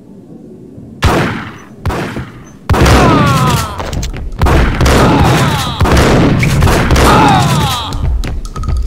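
Gunshots boom loudly in rapid bursts, echoing.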